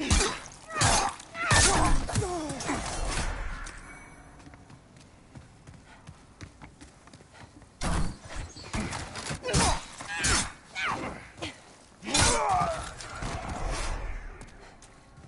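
Sword blows swish and clang in quick bursts.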